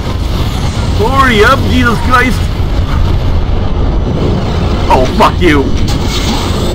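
A monster lets out a wavering, screeching roar.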